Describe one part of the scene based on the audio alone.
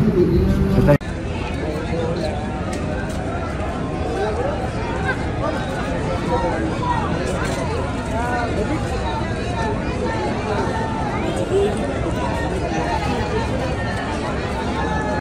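A crowd chatters outdoors all around.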